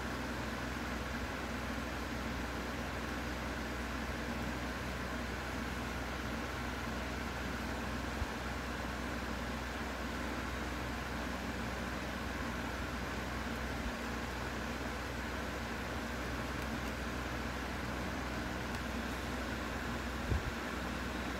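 A felt-tip pen scratches softly on paper.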